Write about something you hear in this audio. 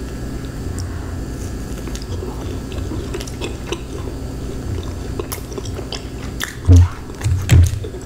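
A woman chews food with wet, crunchy bites close to a microphone.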